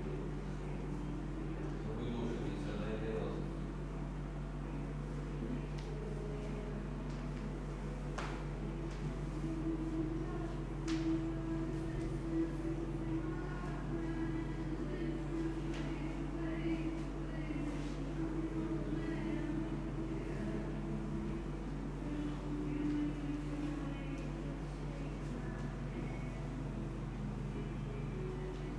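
A man speaks calmly nearby in a room with a slight echo.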